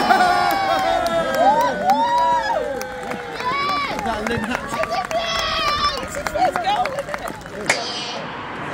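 Spectators clap their hands nearby.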